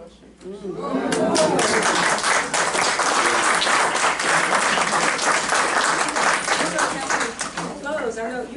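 A group of people applauds in a room.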